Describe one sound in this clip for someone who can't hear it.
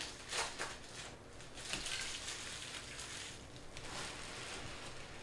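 Plastic card sleeves rustle and crinkle close by.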